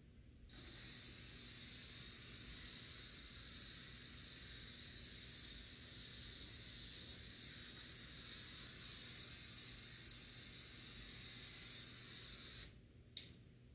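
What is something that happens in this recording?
An aerosol can hisses steadily.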